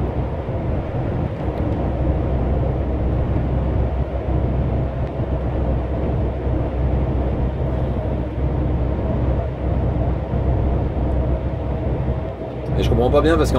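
Tyres roll and hiss on a wet road.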